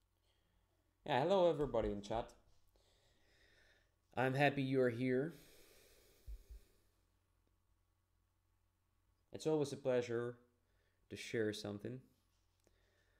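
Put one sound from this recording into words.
A young man speaks calmly into a close microphone, in short bursts with pauses.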